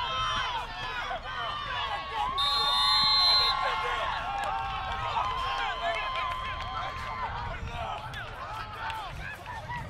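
A crowd of spectators cheers and screams excitedly.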